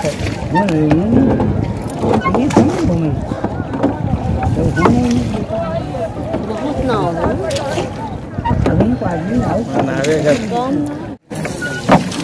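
Men and women talk nearby, outdoors in the wind.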